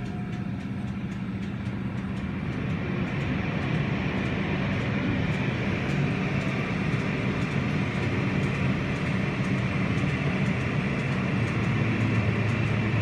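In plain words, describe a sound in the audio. Machinery hums loudly in an echoing space.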